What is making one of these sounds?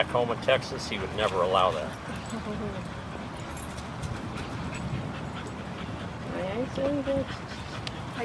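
A dog whines and yips close by.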